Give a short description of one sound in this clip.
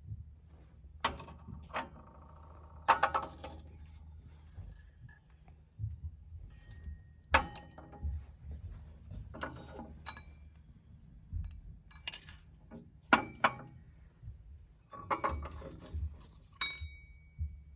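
Porcelain cups clink lightly against saucers.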